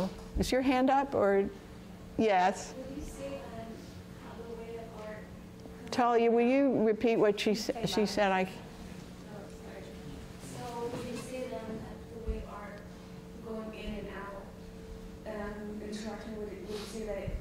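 A woman speaks with animation in a large echoing hall.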